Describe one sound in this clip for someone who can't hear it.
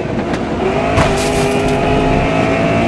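Tyres screech as a racing car slides through a corner.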